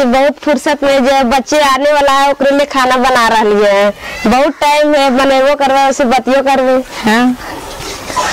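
A woman speaks loudly and with animation close by.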